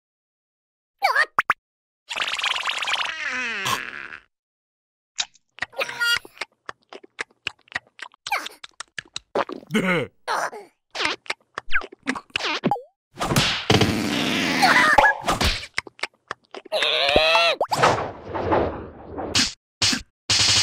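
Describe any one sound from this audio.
A small creature babbles in a squeaky, excited voice.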